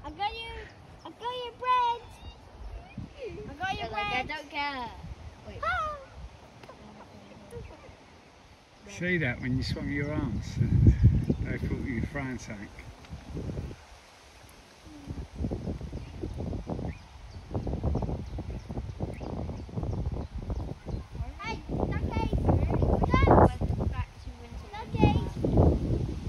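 Geese and goslings peep and chirp close by on the water.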